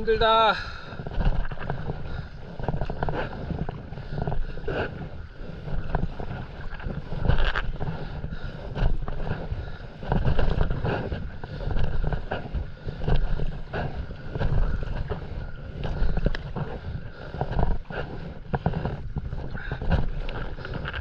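A paddle blade dips and pulls through calm sea water in regular strokes.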